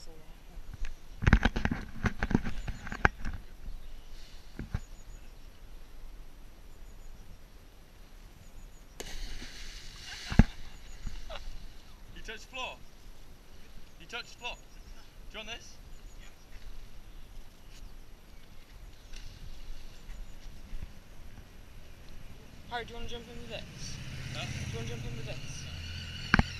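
Young men talk and call out nearby, outdoors.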